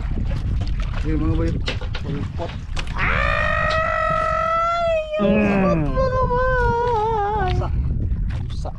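A young man speaks close by, then calls out in long, drawn-out excited tones.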